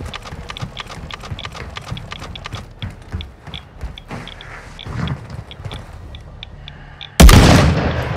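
Footsteps patter quickly on a hard surface.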